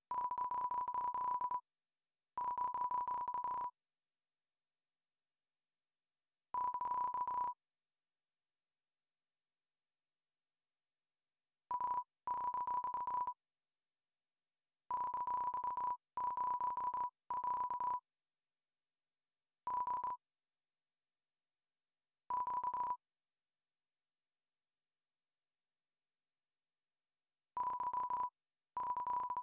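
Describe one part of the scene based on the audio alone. Rapid high electronic blips chatter as video game dialogue text types out.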